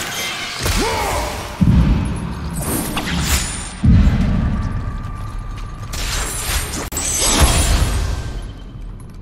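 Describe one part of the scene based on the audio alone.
Heavy blows and slashes crash loudly in a video game fight.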